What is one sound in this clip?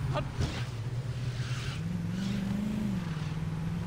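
Car tyres skid on the road.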